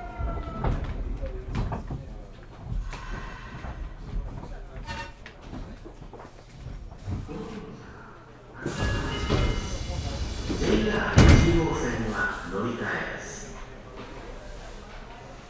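An electric train hums quietly while standing still.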